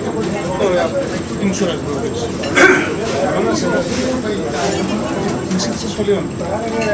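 Men and women chat close by in a crowd.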